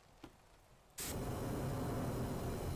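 A flamethrower roars with a loud burst of fire.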